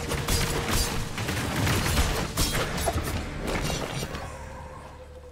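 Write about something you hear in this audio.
Magic blasts crackle and boom in a rapid burst of combat.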